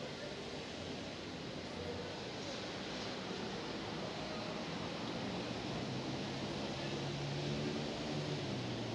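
An elderly man speaks calmly, close to a microphone.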